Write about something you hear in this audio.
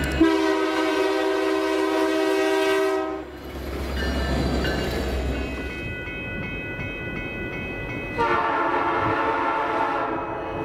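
A freight train rumbles and clatters along the tracks.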